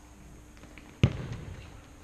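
A ball is kicked hard with a loud thump in a large echoing hall.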